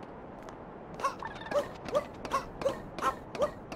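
Short bouncy video game sound effects chirp in a quick, even rhythm.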